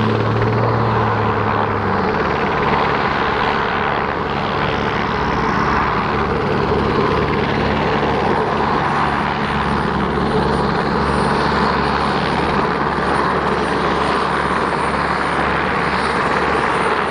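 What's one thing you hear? A helicopter's rotor and engine roar steadily as it flies nearby.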